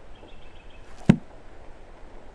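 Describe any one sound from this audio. A heavy book snaps shut with a thud.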